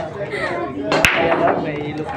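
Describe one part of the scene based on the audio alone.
A cue ball breaks the racked balls with a sharp crack.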